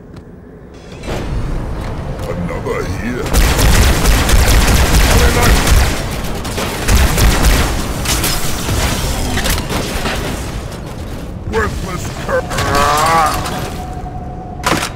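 Energy rifles fire in rapid bursts.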